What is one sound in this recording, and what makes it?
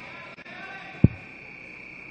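A basketball thuds once on a wooden floor.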